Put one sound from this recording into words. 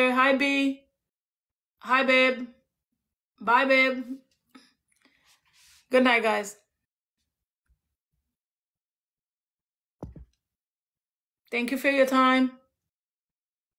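A young woman speaks close by in short, calm phrases with pauses between them.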